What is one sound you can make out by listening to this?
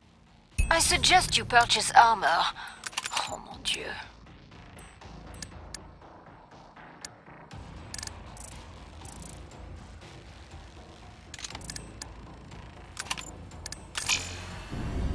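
Short electronic clicks sound as menu items are chosen.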